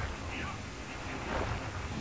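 A burst of fire roars.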